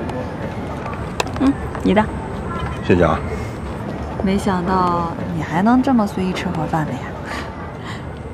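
A young woman speaks brightly and teasingly.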